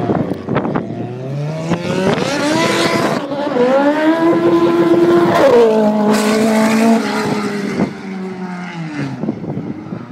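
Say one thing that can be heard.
A car's engine revs up and drops as the gears shift.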